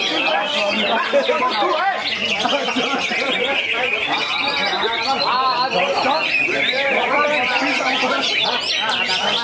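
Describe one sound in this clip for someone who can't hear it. A small bird sings rapid, warbling chirps without pause.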